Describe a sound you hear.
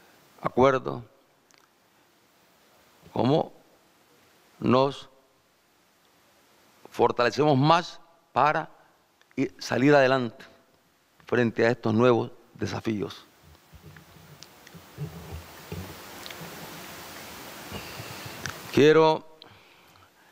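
A middle-aged man speaks into a microphone in short, measured phrases with pauses.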